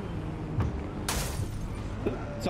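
Metal scrapes and crashes as a car hits another car.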